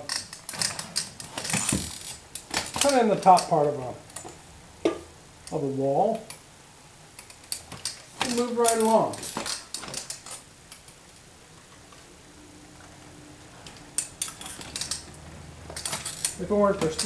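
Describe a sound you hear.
Drywall stilts knock and clack on a hard floor.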